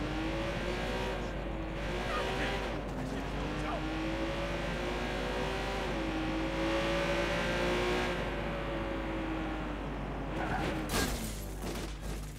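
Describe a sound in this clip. A sports car engine hums and revs up and down steadily.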